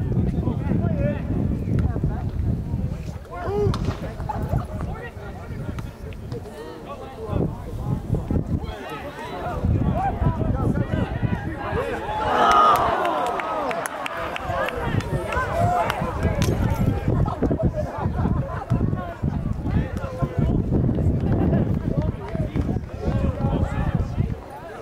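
Young men shout and call out across an open field at a distance.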